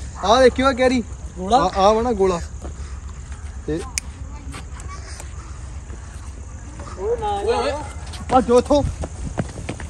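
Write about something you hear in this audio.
A young man talks loudly and excitedly close by.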